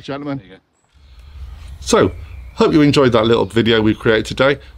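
A middle-aged man speaks with animation, close to a microphone.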